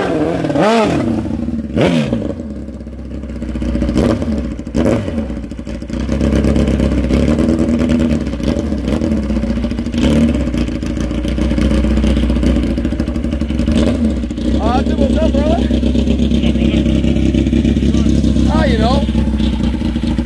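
A drag motorcycle engine revs up sharply several times.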